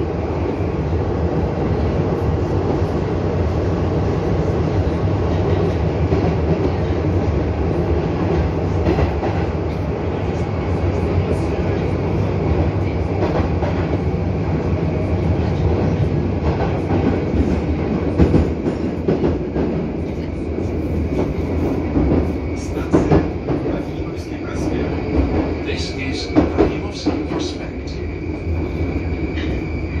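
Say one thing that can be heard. Metal parts of a train car rattle and clatter.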